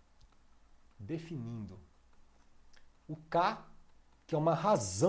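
A man speaks calmly and slowly into a close microphone.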